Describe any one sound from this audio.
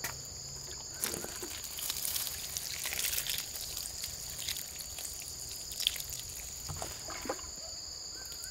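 Water splashes from a watering can onto leaves and soil.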